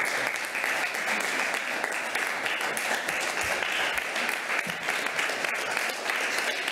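An audience applauds steadily in a large room.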